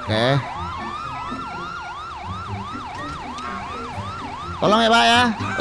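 A police siren wails rapidly nearby.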